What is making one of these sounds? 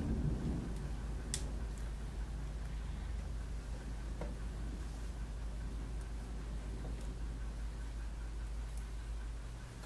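Fingers press and smooth soft clay with faint squishing sounds.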